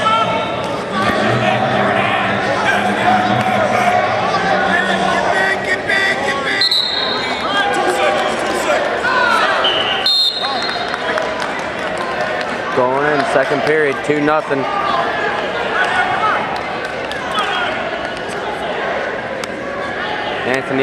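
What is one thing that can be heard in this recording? A crowd in a large echoing hall cheers and shouts.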